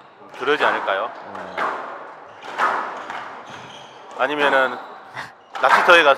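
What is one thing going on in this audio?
A squash ball smacks off a racket and the walls in an echoing court.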